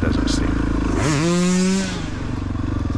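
A second dirt bike roars past close by, its engine pitch dropping.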